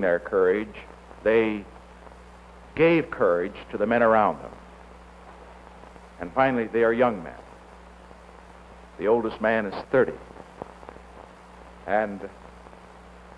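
A middle-aged man speaks slowly and gravely into a microphone, with pauses.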